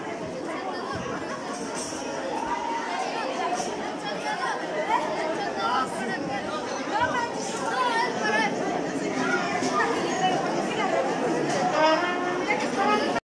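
A large crowd chatters loudly in an echoing hall.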